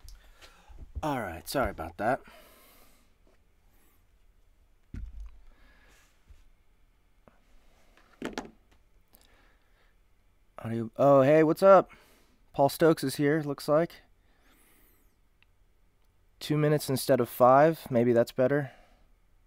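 A young man speaks calmly and closely into a microphone, in short bursts with pauses.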